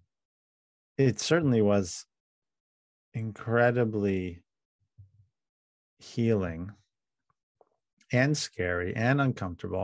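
A man speaks calmly and thoughtfully over an online call, pausing between phrases.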